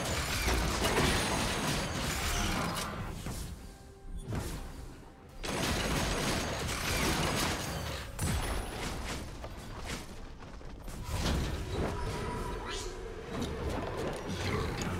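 Magic blasts and clashing hits burst and crackle in a fast fight.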